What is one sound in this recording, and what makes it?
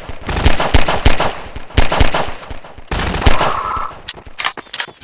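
A pistol fires several sharp shots in quick succession, each with a short echo.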